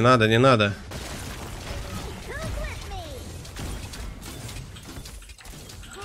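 Magic spells whoosh and crackle in a video game.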